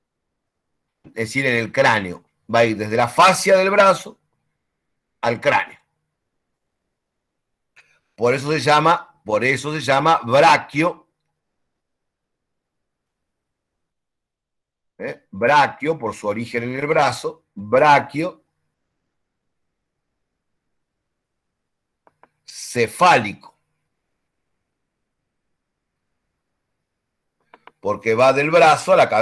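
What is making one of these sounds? A man speaks calmly in bursts through an online call microphone, with pauses between phrases.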